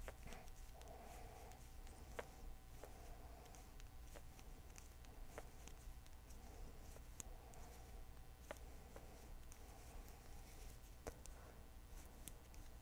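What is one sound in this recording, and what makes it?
Knitting needles click and tap softly.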